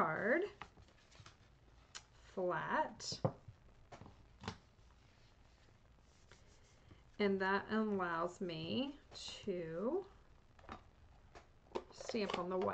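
Paper rustles and taps softly on a table.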